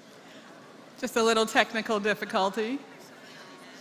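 A man reads out a name through a loudspeaker in a large echoing hall.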